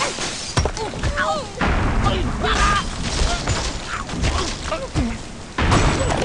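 Wooden blocks crash and clatter as a tower collapses.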